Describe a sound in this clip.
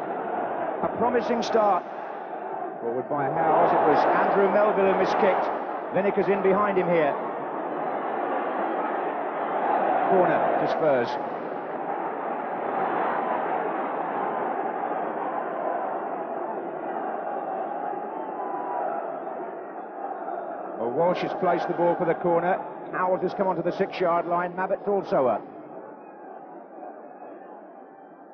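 A large crowd roars and murmurs outdoors.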